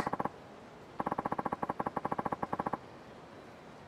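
Rapid electronic blips tick out as text types onto a dialogue box.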